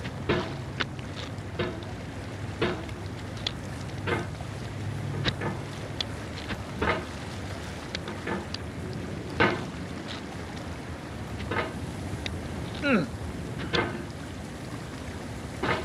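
A hammer knocks and scrapes against rock again and again.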